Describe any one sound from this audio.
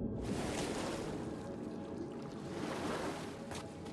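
Water sloshes around a person wading.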